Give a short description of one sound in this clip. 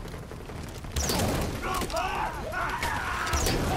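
Fire bursts up with a loud whoosh and roars.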